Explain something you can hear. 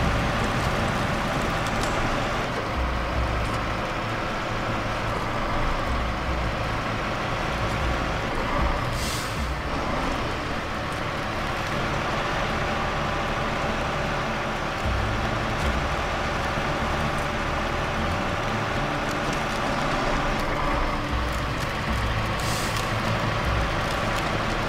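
A heavy truck engine rumbles steadily as the truck drives slowly.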